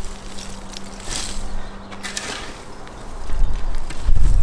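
A shovel scrapes and thuds into loose soil.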